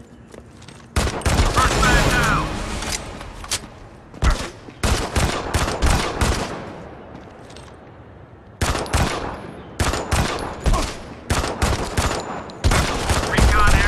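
Gunfire crackles in loud, rapid bursts.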